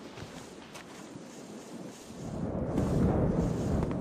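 Boots thud on a stone ledge in a landing.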